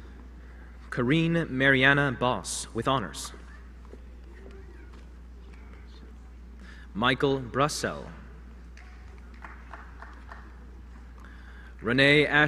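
A man reads out names through a loudspeaker in a large hall.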